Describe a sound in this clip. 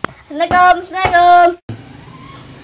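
A boy calls out loudly.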